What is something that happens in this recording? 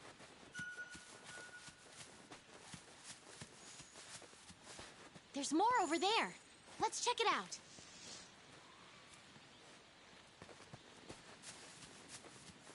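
Armored footsteps run over grass and dirt.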